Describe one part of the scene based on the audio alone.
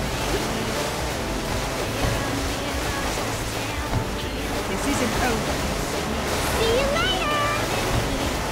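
Water sprays and splashes against a jet ski.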